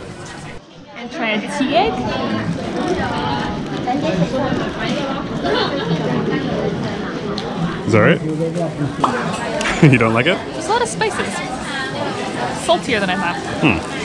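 A crowd murmurs in a busy street.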